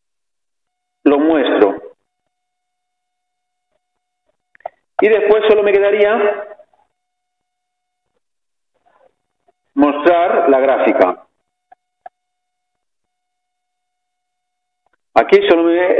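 A man lectures calmly through a microphone, with long pauses.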